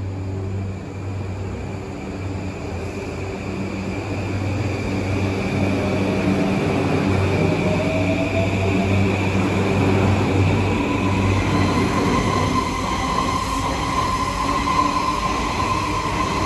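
A train's electric motors hum and whine as it pulls through a station.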